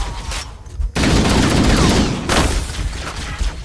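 A weapon fires in a loud, crackling energy burst.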